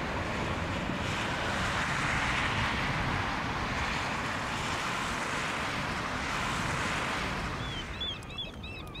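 Cars rush past on a nearby road.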